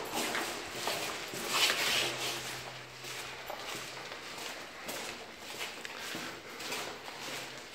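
Footsteps shuffle on a hard floor in a narrow, echoing corridor.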